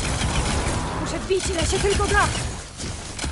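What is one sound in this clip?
A robotic creature screeches.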